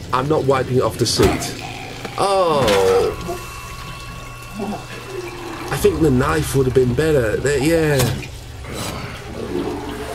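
A man groans and chokes while being strangled.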